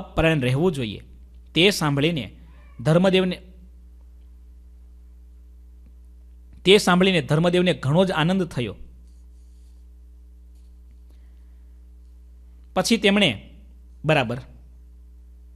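A man speaks calmly into a microphone, in short phrases with long pauses.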